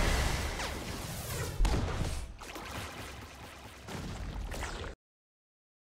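Game attack effects burst and whoosh loudly.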